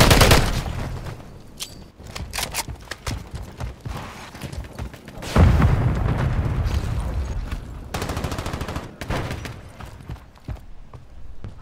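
Gunfire crackles in sharp bursts.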